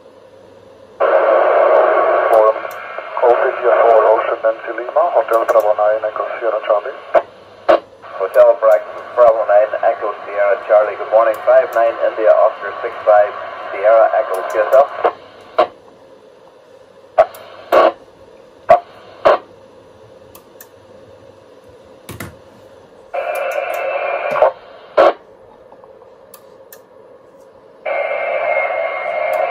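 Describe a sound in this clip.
A radio receiver plays a thin, crackly transmission in bursts.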